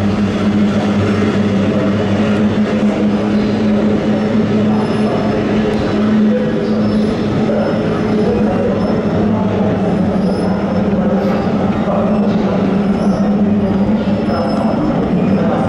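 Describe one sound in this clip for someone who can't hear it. Racing boat engines drone loudly as the boats speed across the water.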